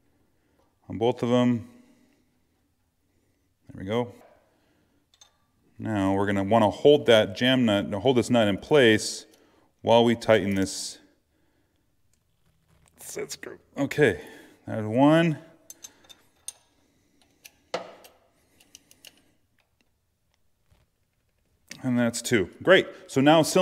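A metal wrench clicks and clinks against bolts.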